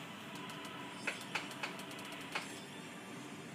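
Bright chimes ring out in quick succession.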